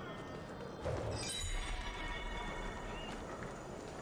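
A thud sounds as a figure lands from a jump.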